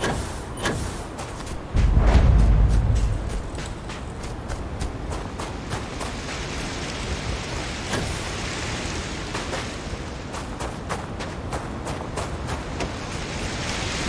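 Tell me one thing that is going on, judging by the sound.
Footsteps crunch steadily on rocky ground.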